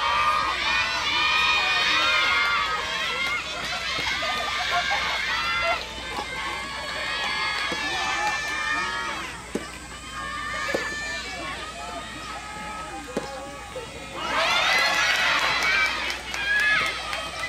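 Young girls cheer and call out loudly in high voices from the side of the court.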